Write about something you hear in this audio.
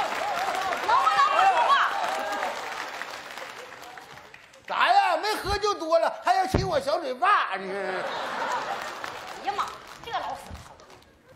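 A woman speaks sharply into a microphone.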